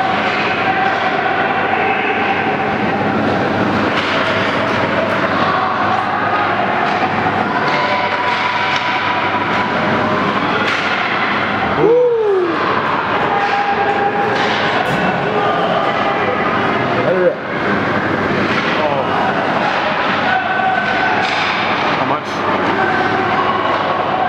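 Ice hockey skates scrape and carve across the ice in an echoing indoor rink.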